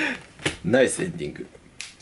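A young man laughs.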